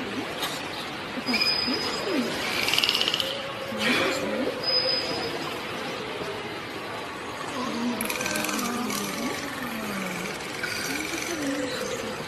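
Dolphins whistle and chirp close by.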